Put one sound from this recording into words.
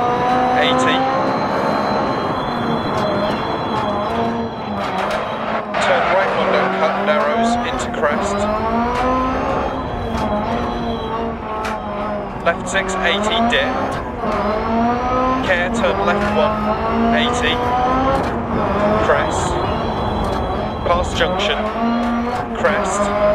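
A rally car engine roars steadily, its pitch rising and falling as it changes gear.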